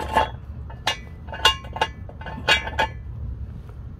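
A metal jack stand ratchets and clicks sharply as it is adjusted by hand.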